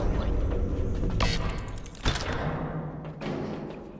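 A heavy metal hatch clanks open.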